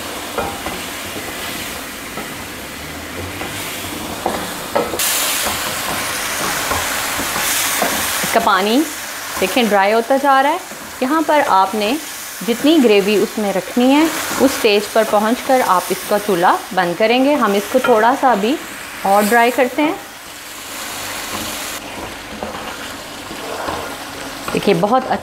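A wooden spoon stirs and scrapes a pan.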